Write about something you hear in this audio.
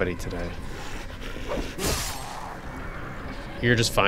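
A zombie growls and groans nearby.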